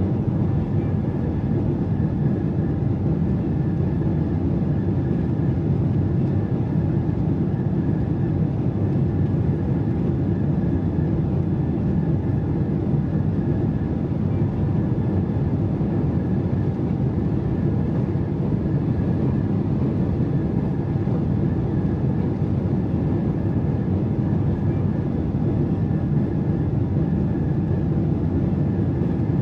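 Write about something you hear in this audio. A jet airliner's engines roar steadily, heard from inside the cabin.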